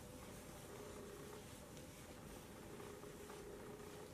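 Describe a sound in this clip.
Fingers rustle softly through hair.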